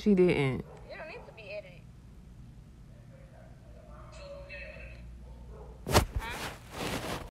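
A young woman speaks casually and close to a phone microphone.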